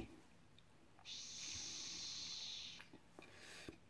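A man inhales from a vape with a soft, steady hiss.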